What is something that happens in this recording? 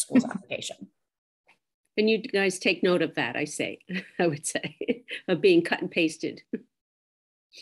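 A woman speaks calmly into a microphone on an online call.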